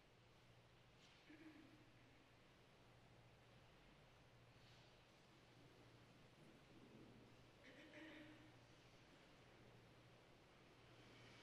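Quiet rustles and small shuffles come from a seated congregation in a large, echoing hall.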